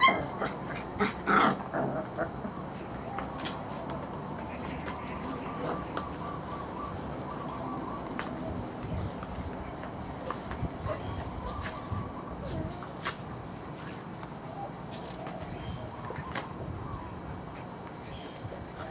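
Paws patter and scuffle on a hard floor.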